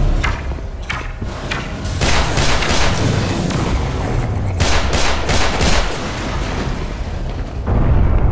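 A pistol fires several sharp shots that echo.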